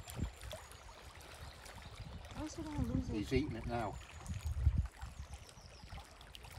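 A river flows gently past a rocky bank.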